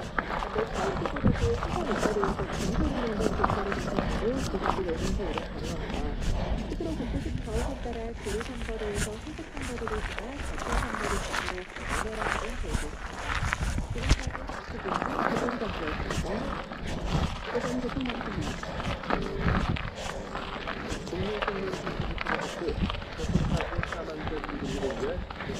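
Bicycle tyres crunch and rattle over a gravel trail.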